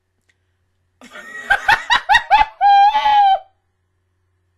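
A young woman laughs loudly into a close microphone.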